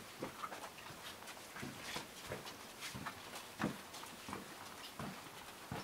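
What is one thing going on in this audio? Footsteps tap and scuff on stone paving.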